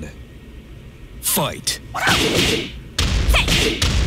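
Heavy punches land with sharp, loud thuds.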